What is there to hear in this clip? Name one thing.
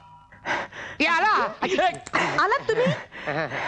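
A middle-aged woman cries out loudly and wails in distress.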